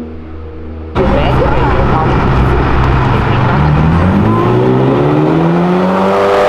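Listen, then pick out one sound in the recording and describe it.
A powerful car engine roars loudly and revs up as the car approaches.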